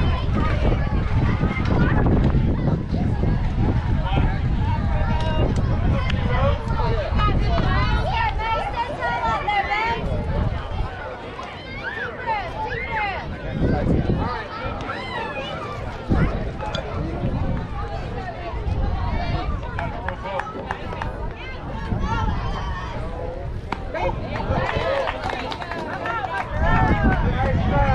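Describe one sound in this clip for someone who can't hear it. Young girls call out and cheer across an open field.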